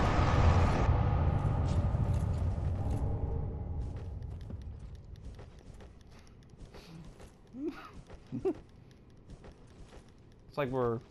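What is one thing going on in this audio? Armoured footsteps clink on a stone floor.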